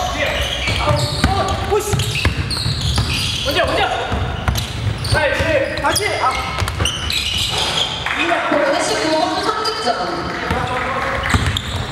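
A basketball bounces on a wooden floor with echoing thuds.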